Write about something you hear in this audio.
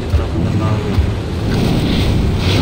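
Stone chunks break loudly from a wall and tumble down.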